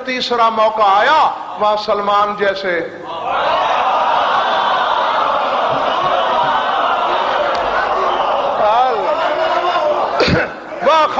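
A man chants and speaks with passion through a microphone.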